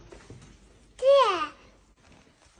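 A toddler squeals loudly close by.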